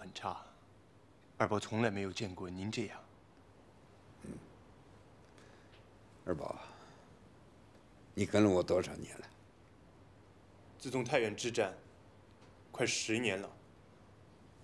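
A young man speaks calmly and close by.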